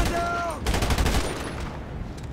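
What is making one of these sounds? Rapid gunfire bursts out loudly.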